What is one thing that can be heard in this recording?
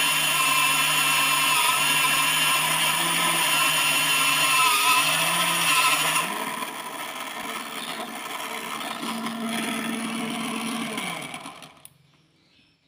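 A small drill motor whines steadily as the bit cuts into metal.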